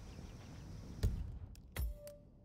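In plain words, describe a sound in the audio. A sharp menu click sounds twice.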